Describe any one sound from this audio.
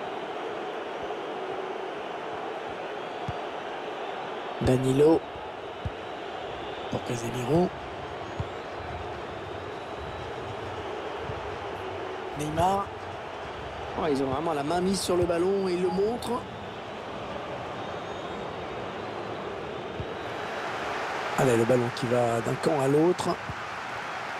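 A large stadium crowd murmurs and roars steadily, swelling near the end.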